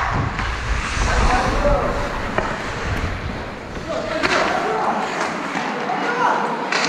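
Young men call out to each other in an echoing rink.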